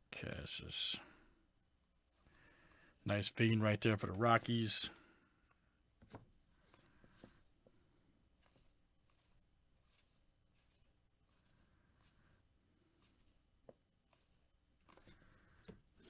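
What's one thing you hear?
Trading cards slide and flick softly against each other.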